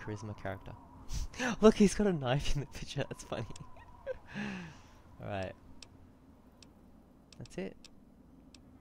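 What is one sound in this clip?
A young man talks and laughs with animation into a close microphone.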